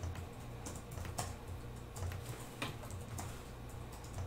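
Fingers tap on laptop keys.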